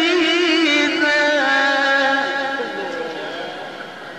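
A man chants in a long, wavering melody through a microphone.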